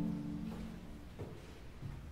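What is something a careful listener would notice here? A sustained choral chord rings out and stops in a large echoing hall.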